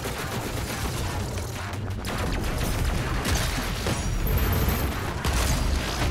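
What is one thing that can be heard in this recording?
A shotgun fires in rapid, booming blasts.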